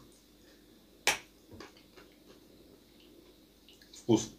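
A young man chews and smacks his lips while eating.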